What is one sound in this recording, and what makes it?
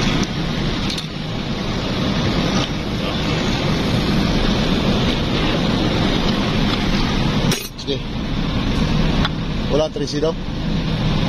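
Metal tools clink and knock against a metal part.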